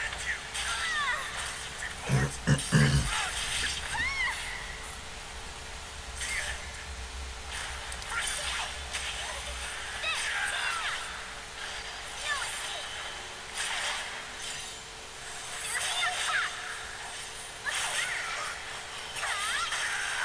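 Magical blasts whoosh and burst.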